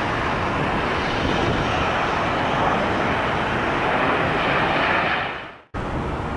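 Jet engines roar louder as an airliner slows on the runway.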